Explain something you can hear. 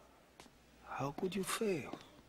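A second man answers in a low voice.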